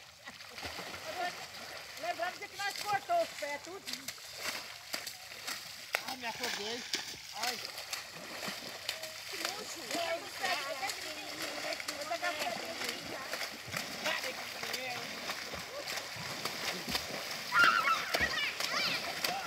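Water splashes as children thrash about in shallow water.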